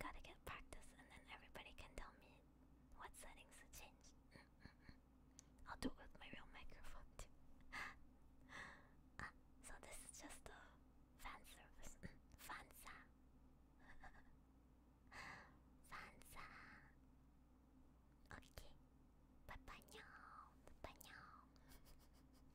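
A young woman speaks softly and playfully into a close microphone.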